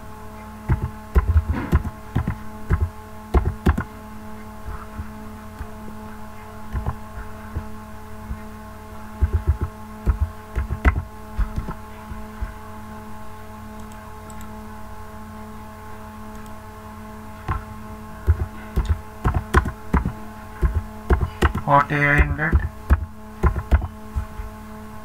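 Keys on a computer keyboard click in quick bursts.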